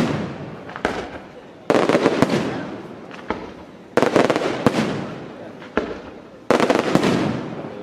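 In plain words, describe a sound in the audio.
Fireworks burst with loud booms, one after another.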